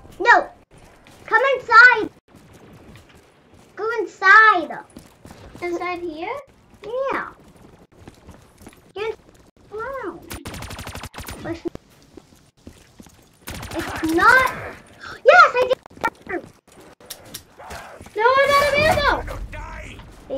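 A young child shouts and squeals excitedly close by.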